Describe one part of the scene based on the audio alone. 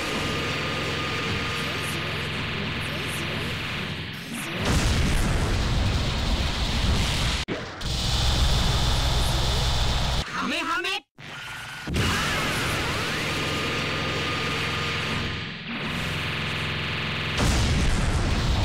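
Energy beams roar and crackle loudly.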